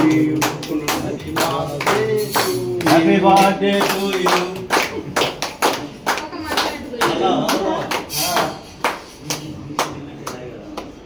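A group of people clap their hands rhythmically.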